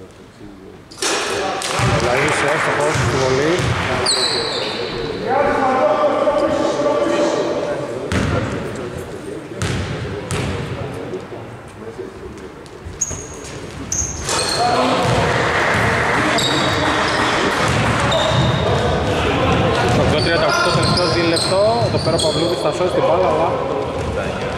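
Men shout and call out across the echoing hall.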